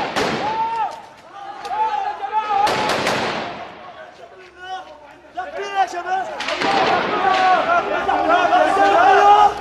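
Men shout loudly to each other close by.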